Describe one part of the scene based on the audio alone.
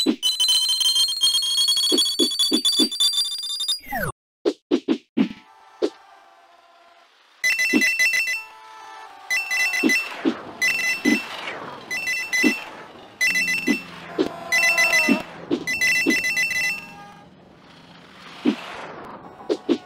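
Coins chime as they are collected one after another.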